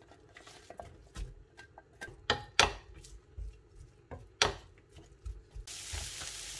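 A wooden spoon stirs and knocks in a metal frying pan.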